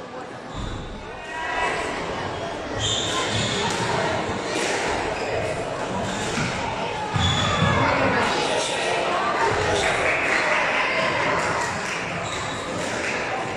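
Racquets hit the ball with sharp cracks.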